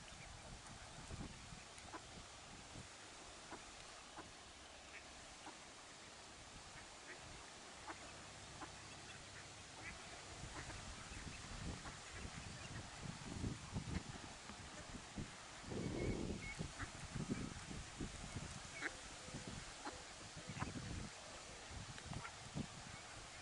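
Ducklings peep in high, short chirps.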